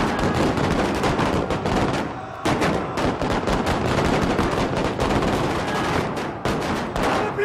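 Rifles fire in rapid volleys.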